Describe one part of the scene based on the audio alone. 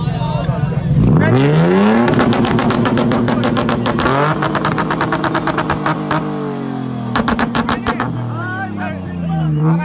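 A pickup truck's engine revs hard, rising and falling in pitch.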